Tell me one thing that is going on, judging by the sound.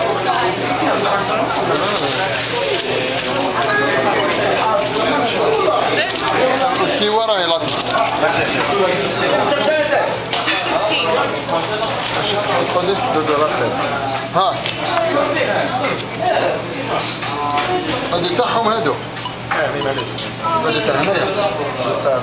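A middle-aged man talks close by.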